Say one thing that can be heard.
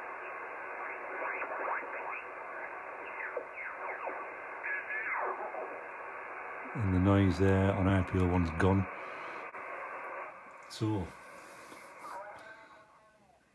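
A radio receiver hisses with static and whistling tones as it is tuned across stations.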